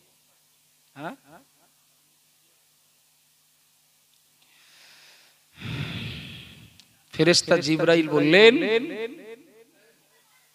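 A man speaks into a microphone in a slow, chanting voice, with pauses.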